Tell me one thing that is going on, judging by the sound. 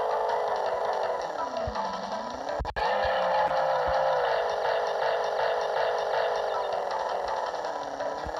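A hoverboard engine hums steadily, its pitch sliding up and down.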